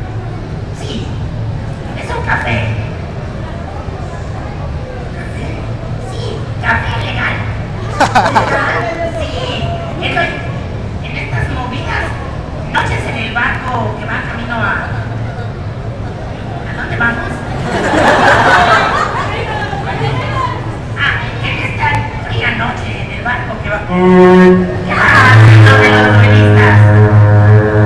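A man talks with animation into a microphone, heard through loudspeakers in a large echoing room.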